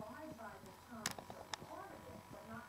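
A chair creaks and clicks as a person sits down.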